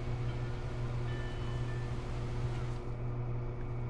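Waves wash softly against a shore.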